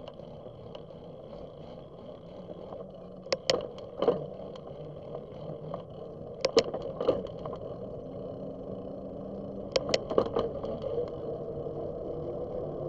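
Bicycle tyres roll steadily on a paved road.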